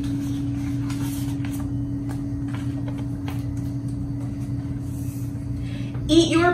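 Book pages rustle and flip.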